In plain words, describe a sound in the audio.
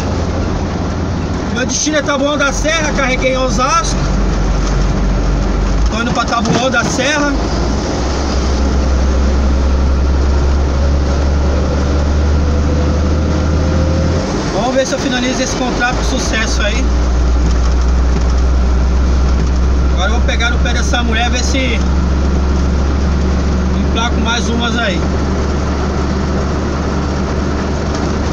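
Tyres rumble on the road surface.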